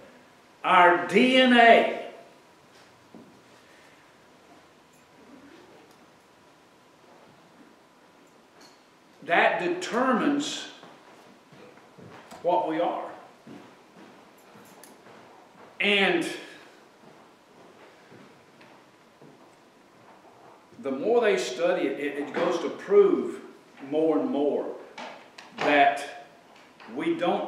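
An older man speaks calmly in bursts with pauses.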